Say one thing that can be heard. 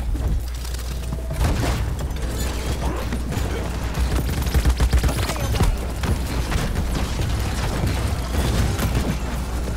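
A game gun fires rapid shots.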